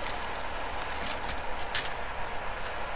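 A video game's loot box opens with short clicking rattles.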